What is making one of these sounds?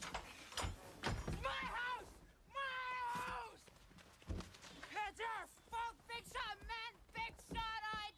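A woman cries out while struggling.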